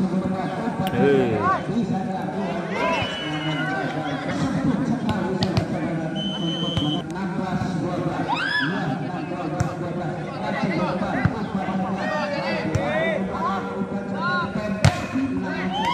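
A volleyball is struck by hand with sharp slaps.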